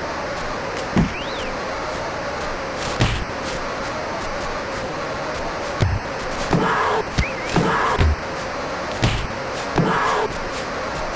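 Punches thump in a boxing game.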